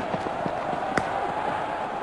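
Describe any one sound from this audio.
A cricket bat strikes a ball.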